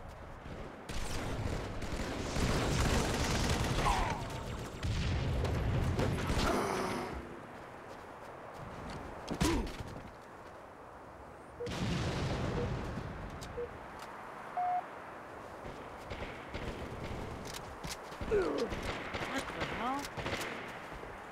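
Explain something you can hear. Gunfire and explosions from a video game ring out in bursts.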